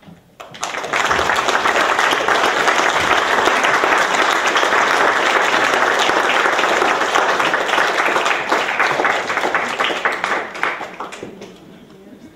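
An audience applauds loudly in an echoing hall, then the clapping dies away.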